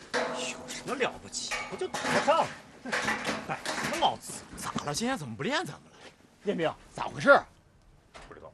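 Young men talk loudly with animation close by.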